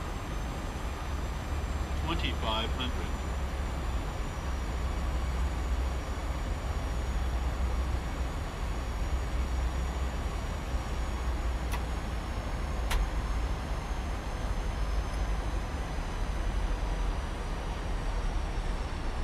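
Wind rushes steadily past an airliner.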